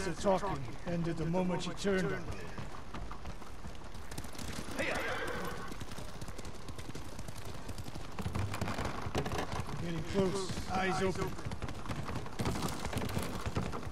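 Horse hooves clop on wooden planks.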